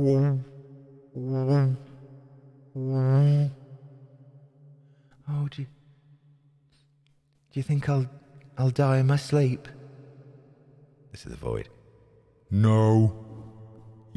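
A man sings in short drawn-out phrases close to a microphone.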